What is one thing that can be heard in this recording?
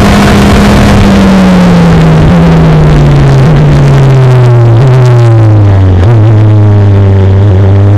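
A Formula Renault 2.0 race car engine drops in pitch as the driver brakes and downshifts for a corner.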